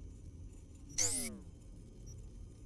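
An electronic whoosh sweeps downward.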